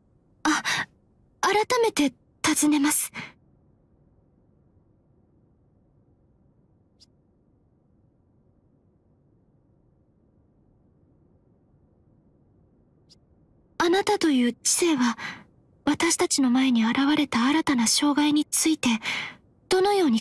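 A young woman speaks calmly and evenly in a voice-over.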